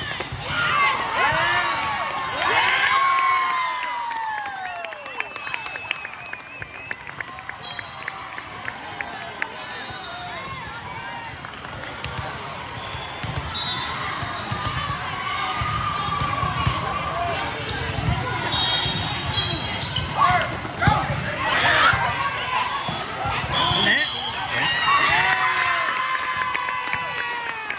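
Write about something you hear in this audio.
Young girls cheer and shout loudly in a large echoing hall.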